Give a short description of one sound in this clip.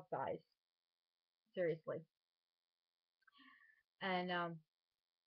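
A woman speaks in short bursts, close to the microphone.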